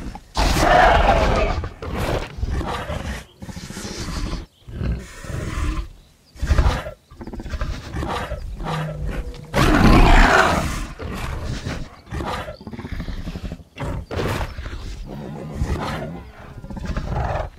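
A large reptile-like creature snarls and hisses.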